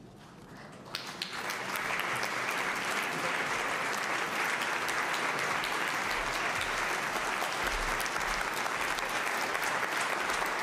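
A large crowd applauds loudly and steadily.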